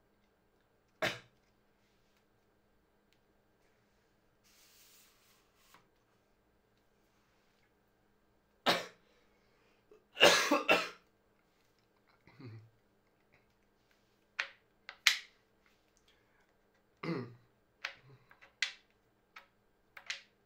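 Tripod leg locks click and snap as they are adjusted.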